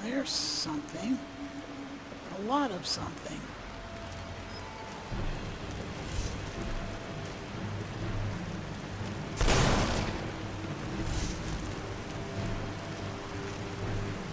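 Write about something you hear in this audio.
A magic spell hums and crackles steadily.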